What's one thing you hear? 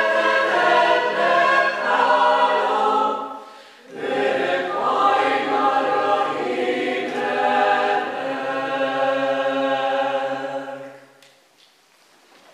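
A mixed choir sings in harmony in a reverberant hall.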